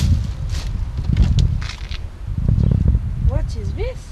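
Bags rustle and thump as they are moved around.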